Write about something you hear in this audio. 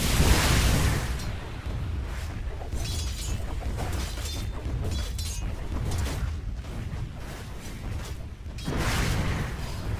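Weapons clash and hit in quick bursts.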